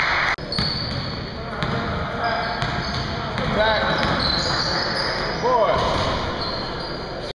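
Sneakers squeak sharply on a wooden court in a large echoing gym.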